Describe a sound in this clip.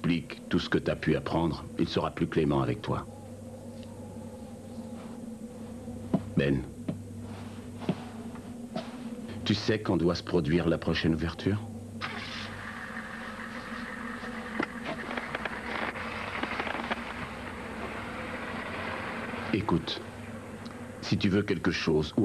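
A man speaks in a firm, low voice close by.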